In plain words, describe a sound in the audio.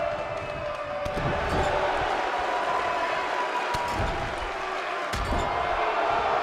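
Heavy blows thud onto a body and the ring mat.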